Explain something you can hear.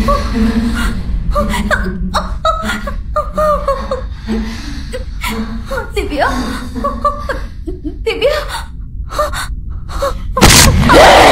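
A young woman speaks anxiously nearby.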